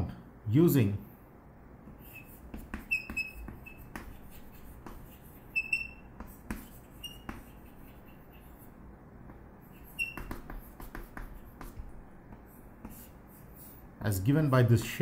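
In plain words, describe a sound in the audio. Chalk taps and squeaks on a blackboard.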